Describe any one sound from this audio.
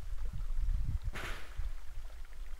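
A short electric zap bursts out.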